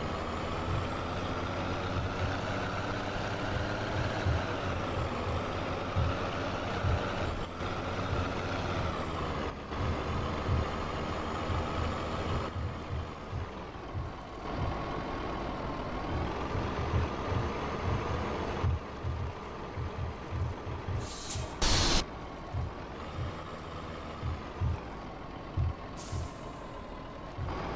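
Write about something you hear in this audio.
A truck engine hums steadily with a slowly shifting pitch.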